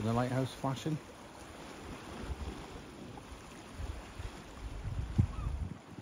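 Calm sea water laps gently against a stone wall.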